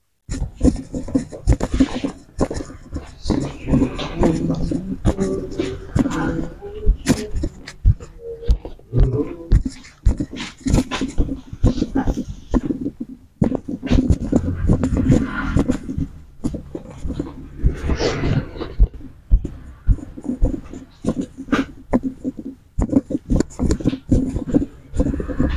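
Hands knead and rub a man's shoulders through a towel.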